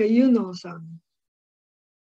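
An older woman speaks cheerfully over an online call.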